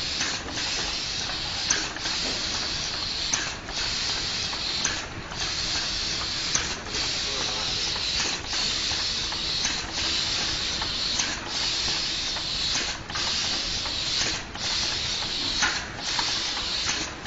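A conveyor belt hums steadily.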